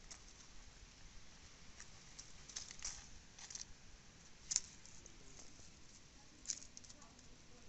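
Dry leaves rustle and crackle under a cat's paws.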